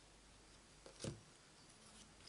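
A small plastic bottle is set down on a table with a knock.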